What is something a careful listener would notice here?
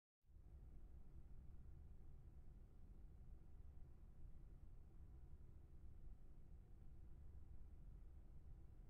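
A pipe organ plays soft, low sustained chords.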